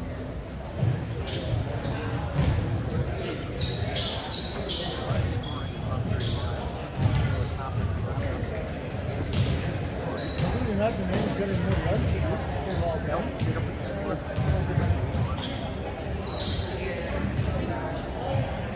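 Shoes squeak sharply on a gym floor, echoing in a large hall.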